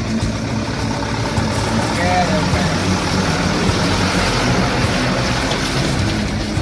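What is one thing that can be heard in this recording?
A truck engine rumbles steadily close by.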